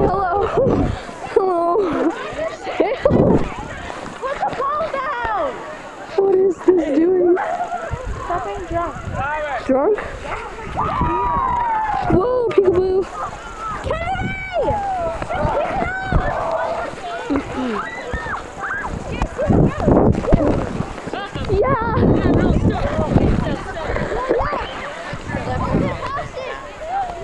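A young woman talks and laughs close to the microphone.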